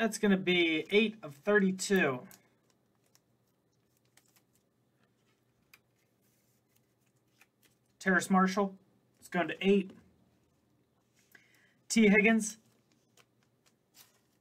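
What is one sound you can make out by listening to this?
Plastic card sleeves rustle and crinkle in hands.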